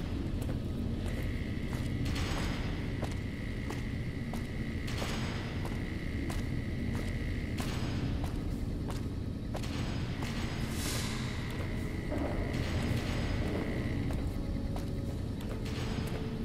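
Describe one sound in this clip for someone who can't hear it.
Footsteps clang steadily on metal stairs and grating.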